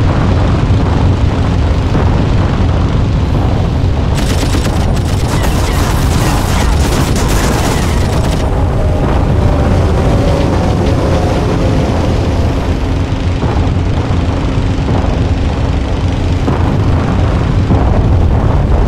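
A propeller engine drones loudly and steadily.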